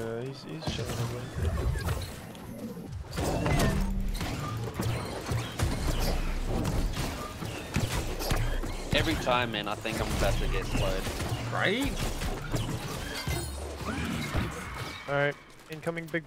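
Spells burst loudly in a fight.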